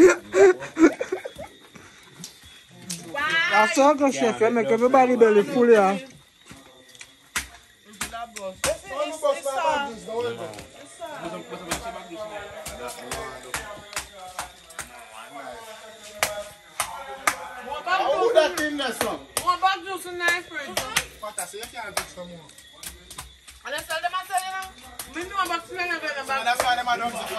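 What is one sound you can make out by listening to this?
Several young men and women talk and laugh nearby.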